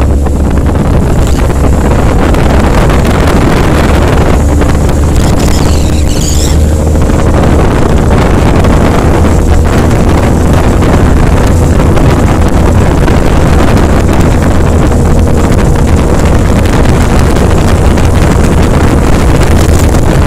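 Wind roars loudly against a moving motorcycle rider's helmet.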